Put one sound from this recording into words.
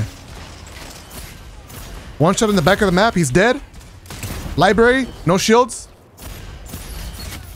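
Gunfire from a video game rattles.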